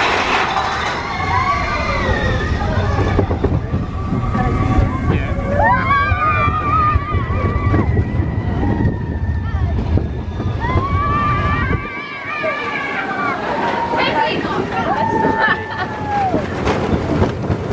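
Riders on a roller coaster scream and shriek with excitement.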